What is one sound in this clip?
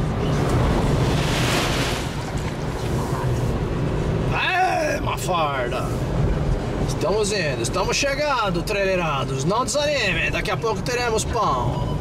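Windshield wipers swish back and forth.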